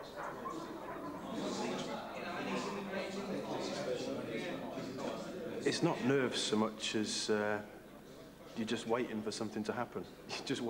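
Several men talk together in a room.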